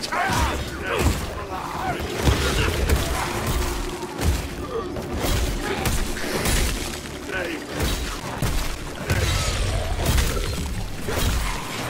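Fire crackles and bursts in a sudden explosion.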